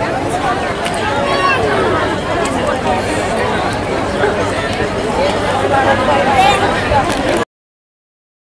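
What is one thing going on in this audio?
A large crowd chatters and murmurs outdoors.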